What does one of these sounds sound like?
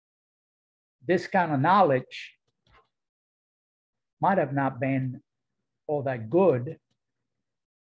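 An elderly man speaks calmly over an online call, in short phrases with pauses.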